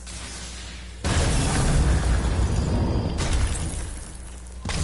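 An axe smashes into a hanging brazier with a loud crash.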